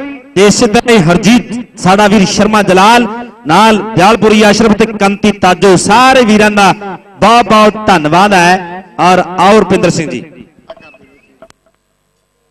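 A man speaks loudly and rapidly, close by.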